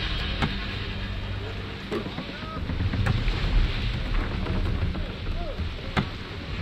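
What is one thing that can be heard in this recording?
Wind blows steadily through a ship's sails and rigging.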